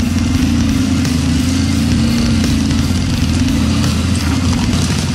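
Brush scrapes against a dirt bike.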